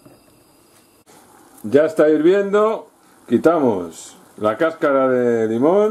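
Milk bubbles and simmers in a pan.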